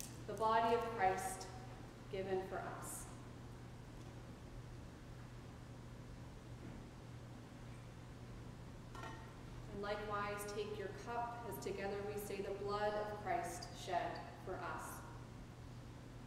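A woman sings a chant alone in a reverberant hall.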